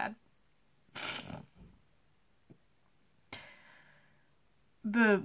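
A young person sniffles and breathes out heavily.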